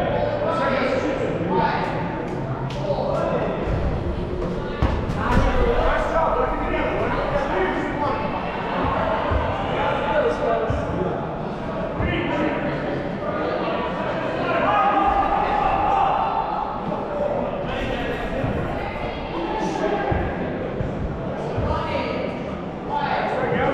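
Shoes squeak and thud on the floor as players run.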